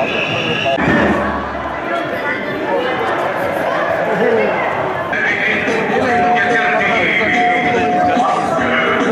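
A crowd of marchers chants and shouts outdoors.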